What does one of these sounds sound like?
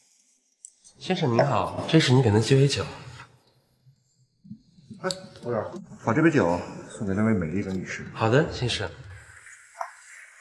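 A young man answers briefly, close by.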